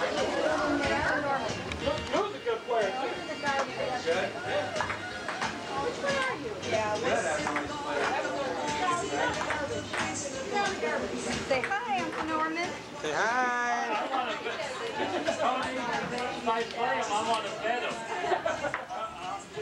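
Adults chat in the background outdoors.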